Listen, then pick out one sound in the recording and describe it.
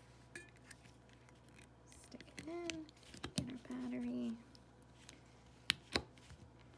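A battery clicks and taps against a small plastic holder.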